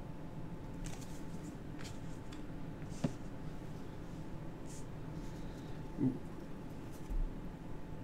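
Playing cards slide and tap softly on a play mat.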